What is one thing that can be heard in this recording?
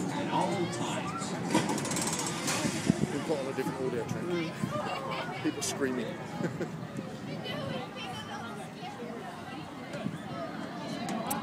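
A crowd of riders chatters and calls out nearby.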